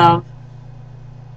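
A young woman speaks briefly, close to the microphone.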